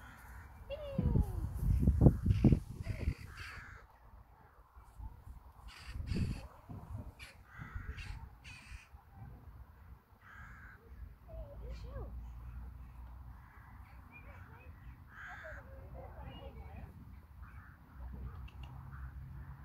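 A woman speaks calmly and encouragingly to a dog nearby.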